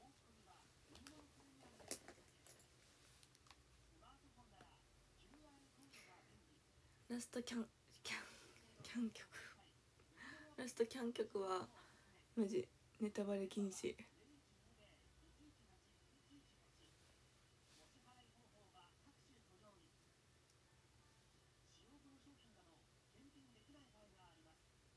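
A young woman talks softly and casually, close by.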